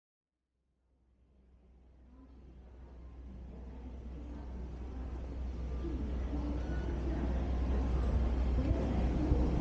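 Distant voices murmur in a large echoing hall, fading in from silence.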